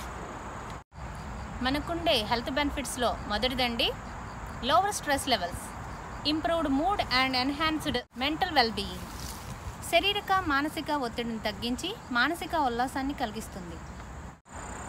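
A young woman talks calmly and close by.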